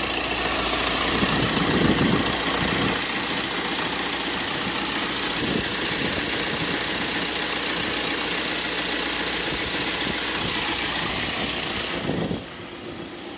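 A van's turbo-diesel engine idles up close.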